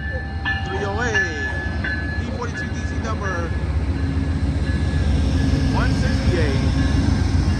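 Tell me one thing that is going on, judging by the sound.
Train wheels squeal shrilly on the rails.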